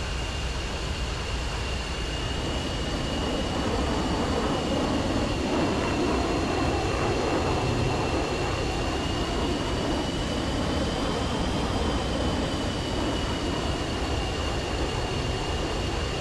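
Wheels rumble over a runway.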